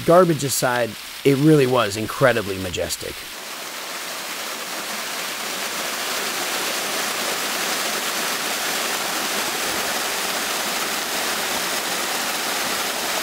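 A waterfall splashes and rushes steadily over rocks.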